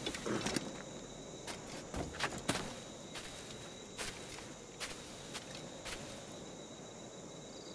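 Footsteps crunch softly on grass and earth.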